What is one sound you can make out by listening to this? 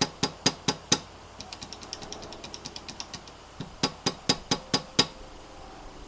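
Fingers press keyboard switches, which click sharply in quick bursts.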